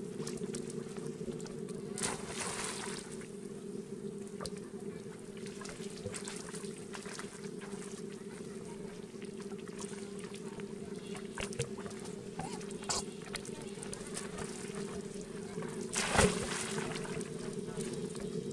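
Water splashes softly as monkeys paddle and swim.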